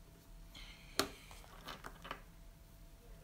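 Sharp clicks and taps sound close by as a man handles a small object.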